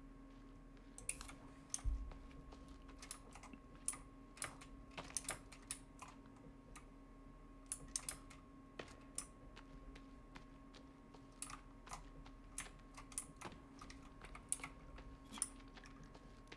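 Footsteps scuff and click on rocky ground.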